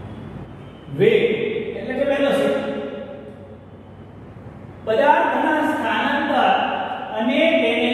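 A man speaks calmly, explaining, close to a microphone.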